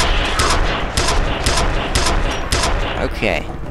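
A gun fires a steady run of loud shots.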